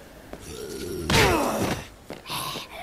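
A wet, heavy smack and splatter rings out as bodies are struck.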